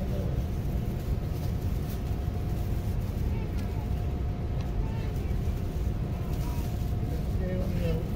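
A plastic bag rustles and crinkles close by.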